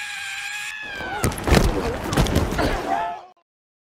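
A person thuds hard onto dirt.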